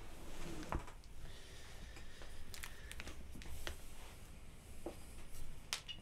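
Gear clicks and knocks as a young man handles it.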